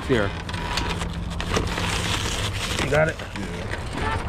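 Plastic water bottles crinkle as a pack is handled.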